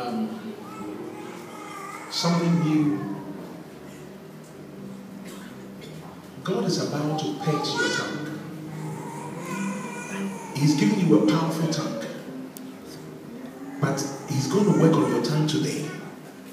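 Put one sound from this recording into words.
Several women murmur and pray softly nearby.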